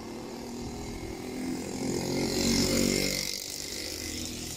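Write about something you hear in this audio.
A motorcycle engine passes by close.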